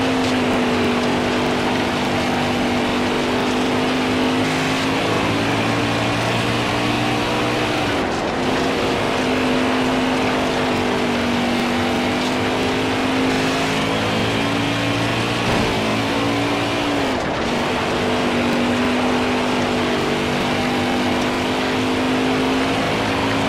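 A race car engine roars steadily, its pitch dipping briefly as it slows for the turns and climbing again.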